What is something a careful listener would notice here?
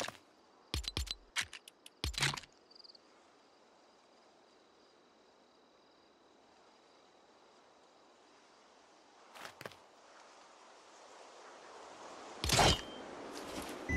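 Short interface clicks and chimes sound in quick succession.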